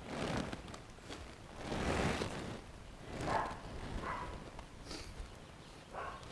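A tarp rustles as it is dragged and folded.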